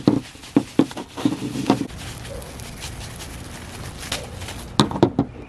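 Plastic wrap crinkles and rustles in bursts.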